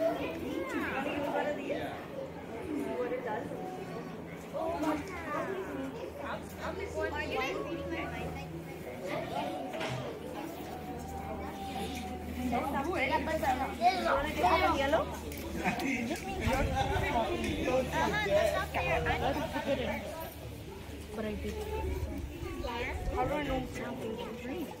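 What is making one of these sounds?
Women talk with animation nearby, outdoors.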